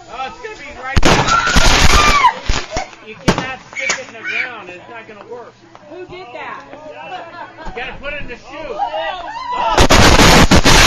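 A group of adults shout and scream in alarm outdoors.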